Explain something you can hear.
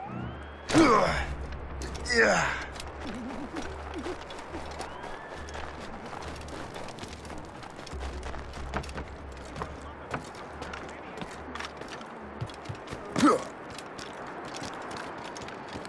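Footsteps crunch quickly over snow.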